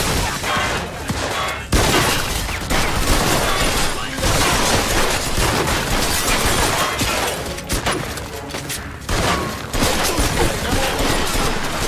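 Gunshots crack rapidly in a loud exchange of fire.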